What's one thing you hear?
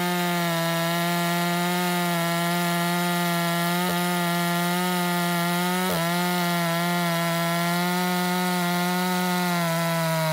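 A chainsaw chews through wood.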